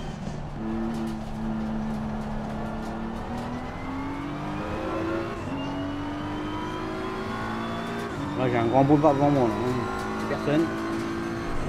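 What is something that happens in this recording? A racing car engine drones and climbs in pitch as it shifts up through the gears.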